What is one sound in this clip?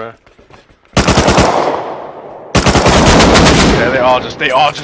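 Rifle shots fire in loud, rapid bursts with a ringing echo.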